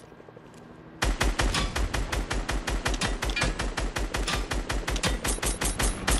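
A rifle fires rapid bursts of loud, fast shots.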